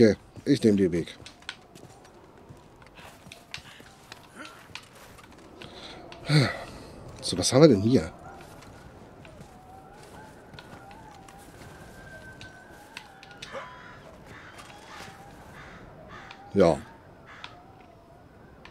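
Footsteps crunch on snow and rock.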